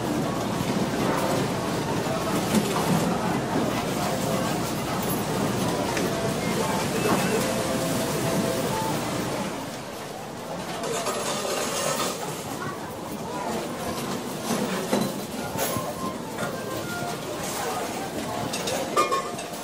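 Slot machines chime and jingle with electronic tones.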